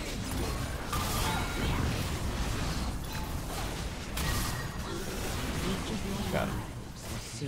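Bursts of impact sounds hit hard.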